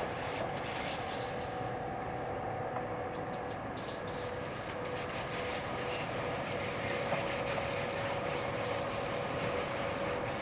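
A train rumbles steadily along the rails with a whining hum.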